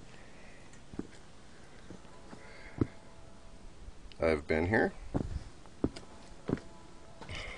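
Footsteps scuff and tap on concrete steps.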